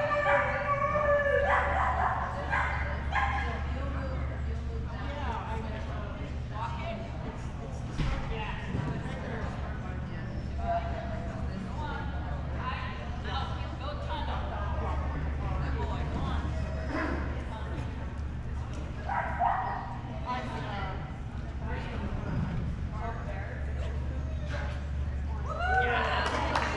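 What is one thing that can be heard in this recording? A woman calls out commands to a dog from across a large echoing hall.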